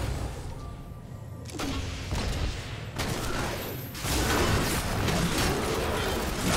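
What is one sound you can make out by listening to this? Weapons clash and thud in a game fight.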